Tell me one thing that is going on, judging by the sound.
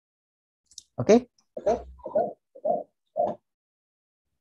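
A young woman speaks briefly over an online call.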